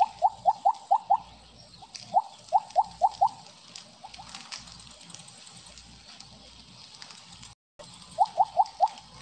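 Short rising electronic blips chime in quick bursts.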